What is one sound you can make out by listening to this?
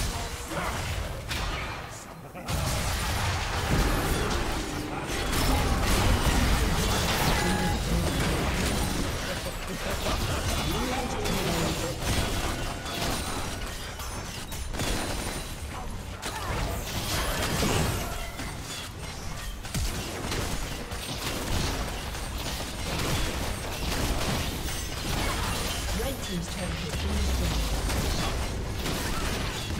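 Spell blasts and explosions crackle and boom in a game battle.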